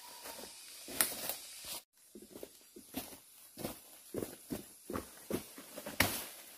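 Dry leaves and bamboo stalks rustle and crack as a woman moves through them.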